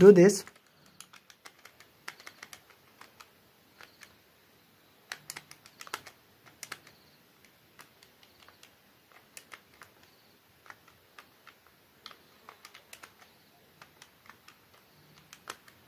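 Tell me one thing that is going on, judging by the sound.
Calculator buttons click with soft, quick taps.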